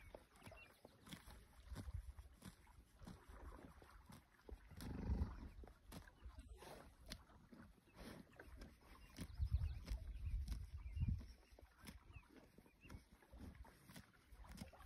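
A horse tears and chews grass close by.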